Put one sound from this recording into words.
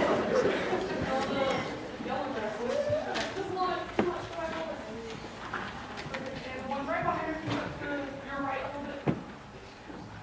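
A mixed choir of teenagers sings softly in an echoing hall.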